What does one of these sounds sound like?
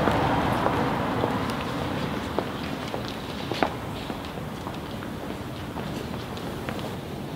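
Footsteps click on a hard floor.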